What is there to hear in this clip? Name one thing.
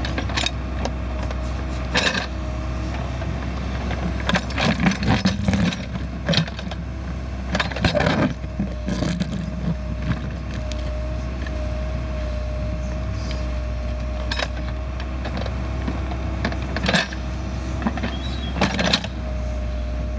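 A backhoe bucket scrapes and clanks against dirt and stones.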